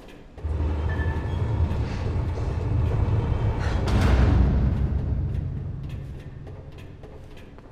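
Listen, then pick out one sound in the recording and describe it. Footsteps clatter down metal stairs.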